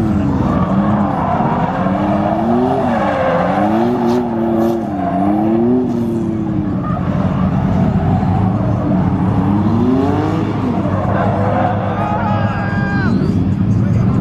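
Tyres squeal loudly on pavement.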